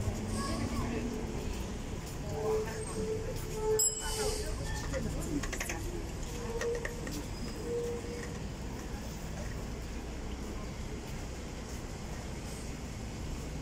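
Footsteps tap on a paved sidewalk outdoors.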